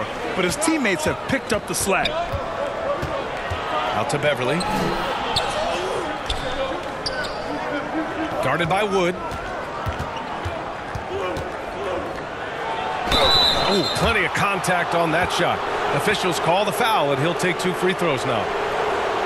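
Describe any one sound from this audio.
Basketball shoes squeak sharply on a hardwood court.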